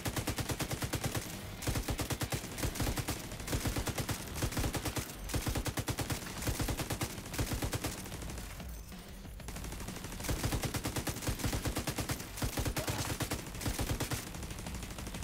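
Rapid gunfire rattles in short, repeated bursts.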